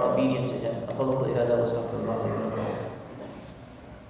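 A man speaks calmly and close to a headset microphone.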